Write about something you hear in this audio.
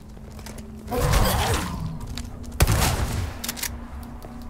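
A gun fires loudly twice with a booming echo.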